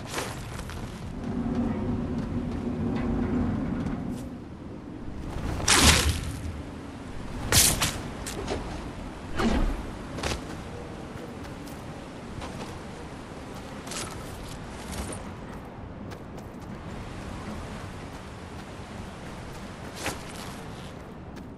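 Footsteps clatter quickly on metal and ground.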